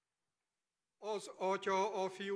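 A middle-aged man speaks calmly through a microphone and loudspeakers.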